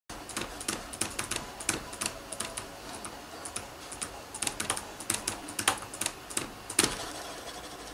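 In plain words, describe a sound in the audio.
Keyboard keys click rapidly in quick bursts.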